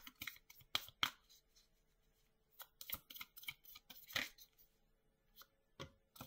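Cards tap and rustle against a table in short bursts.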